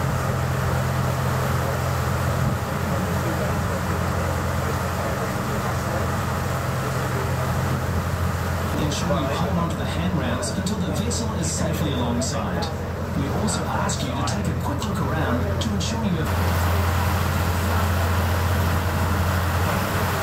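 A ferry's engine drones low and steady.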